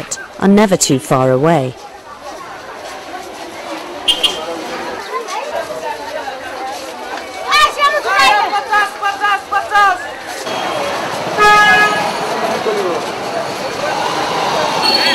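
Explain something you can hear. A busy crowd murmurs and chatters outdoors.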